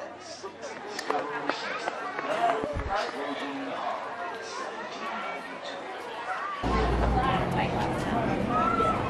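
People chatter and walk about outdoors.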